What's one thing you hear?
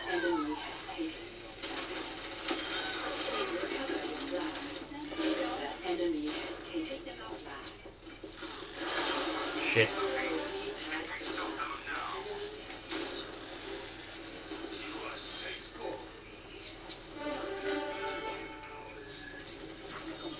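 Video game gunfire pops and cracks through loudspeakers.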